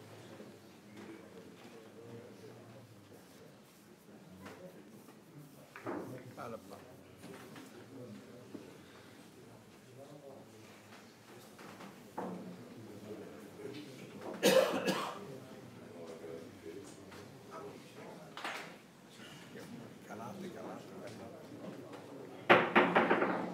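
A cue strikes a billiard ball.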